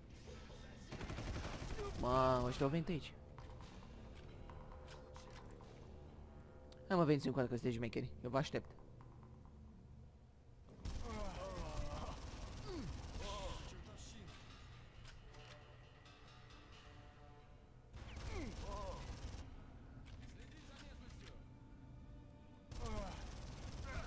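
A rapid-fire gun shoots in short, loud bursts.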